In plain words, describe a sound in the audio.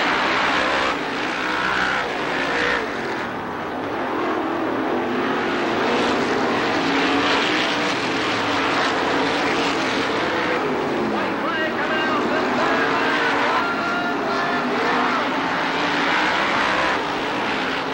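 A crowd murmurs and cheers nearby.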